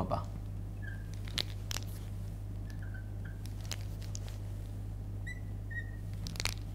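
A marker squeaks softly on a glass board.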